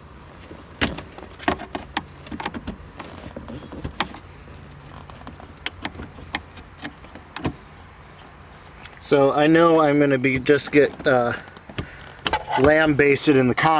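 A screwdriver clicks and scrapes against a plastic clip.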